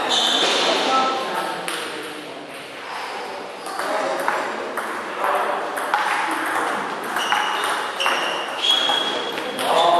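A table tennis ball clicks back and forth off paddles and the table in a quick rally.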